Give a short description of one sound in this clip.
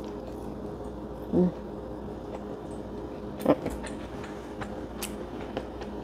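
A young woman chews food with her mouth closed.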